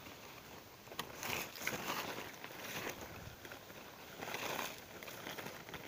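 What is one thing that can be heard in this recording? Leaves rustle as branches are pushed about.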